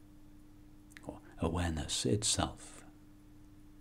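A middle-aged man speaks briefly and calmly close to a microphone.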